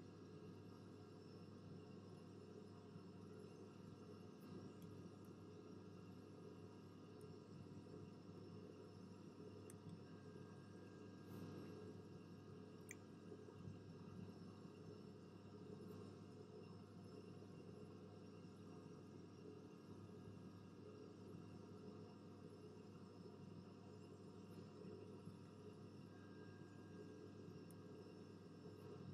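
Jet engines drone steadily in a cockpit during flight.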